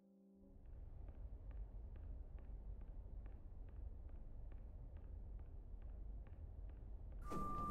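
Footsteps walk steadily along a hard floor.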